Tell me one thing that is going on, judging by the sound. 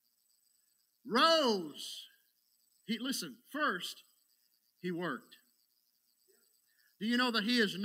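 A middle-aged man speaks with animation through a microphone in a large room, pausing between phrases.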